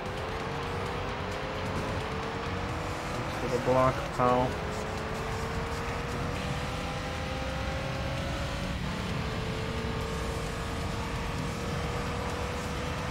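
A racing car engine hums steadily at high revs.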